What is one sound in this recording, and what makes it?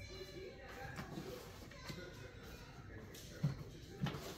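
Small objects knock and clatter close by as they are handled.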